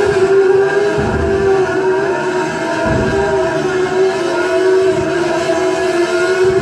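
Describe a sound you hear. An open-wheel racing car engine whines at high revs from an arcade machine's loudspeakers.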